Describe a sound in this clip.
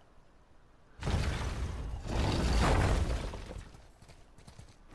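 Heavy doors grind and rumble as they are pushed open.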